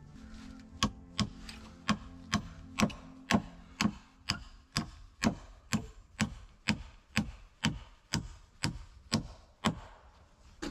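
A man chops wood with quick, regular blows.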